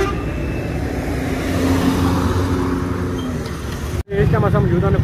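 A motorbike engine hums as it rides past on a street.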